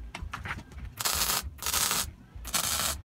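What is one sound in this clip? An arc welder crackles and sizzles in short bursts.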